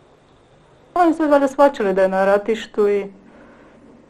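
A young boy speaks and laughs nearby.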